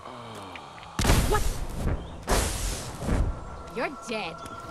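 A laser gun fires with loud crackling blasts.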